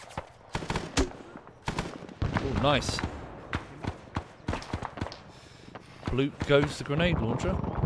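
Gunshots crack repeatedly, some near and some farther off, echoing.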